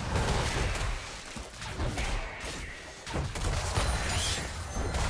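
Video game combat effects clash with quick hits and magical bursts.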